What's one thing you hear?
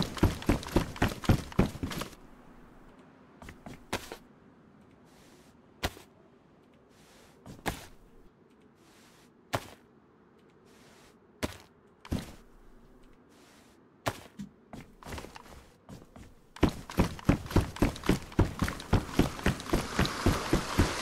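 Quick footsteps thud on hollow wooden planks.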